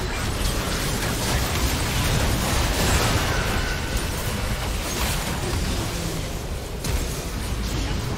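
Spell effects and weapon hits crackle and burst rapidly during a fight.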